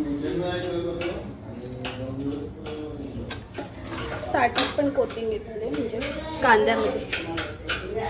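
A spoon stirs and scrapes inside a metal pot.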